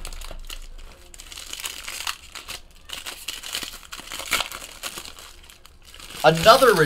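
Plastic foil crinkles as a pack is torn open.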